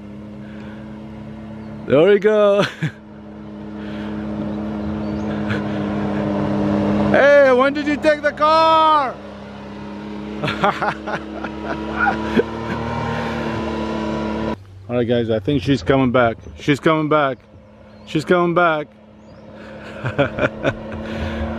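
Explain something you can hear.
An off-road buggy engine roars and revs as it approaches and passes close by.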